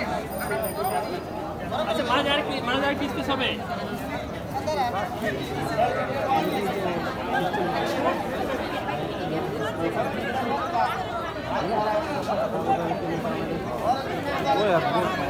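Several men and women talk over one another nearby.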